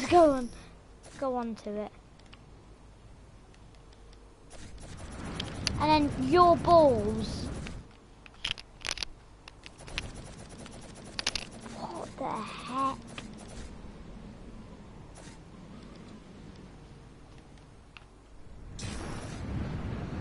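Game building pieces snap into place with quick clicks.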